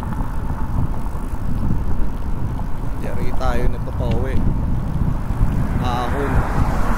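Wind rumbles and buffets loudly outdoors while riding along.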